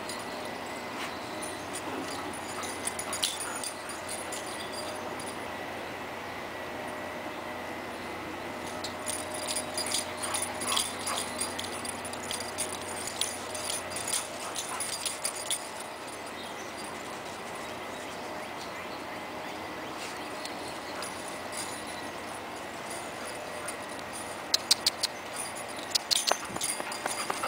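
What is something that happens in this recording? Dogs' paws patter and rustle across dry grass and leaves as they run.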